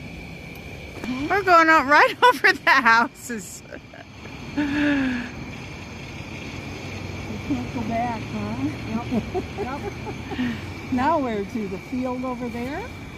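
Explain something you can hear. An elderly woman talks close by.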